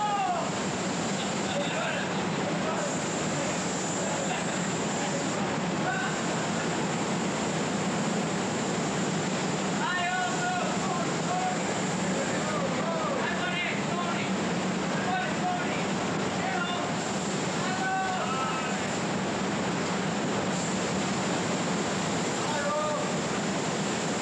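Men talk loudly over the hissing.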